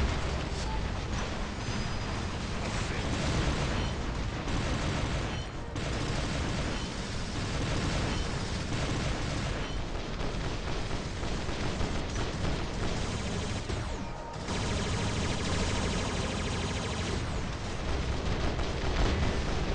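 Heavy guns fire in rapid, continuous bursts.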